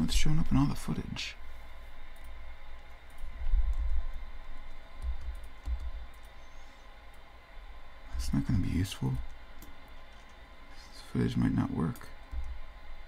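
A man speaks calmly into a microphone, in short bursts.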